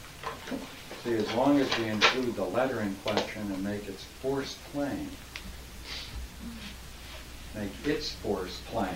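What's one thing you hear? An elderly man reads aloud calmly, close by.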